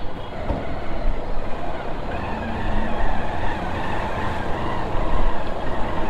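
Tyres splash through shallow muddy water.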